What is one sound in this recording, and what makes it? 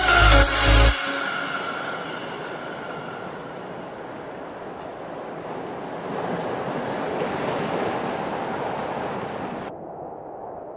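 Waves break and wash onto the shore in a steady roar.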